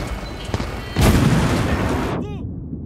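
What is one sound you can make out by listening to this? An explosion booms loudly nearby.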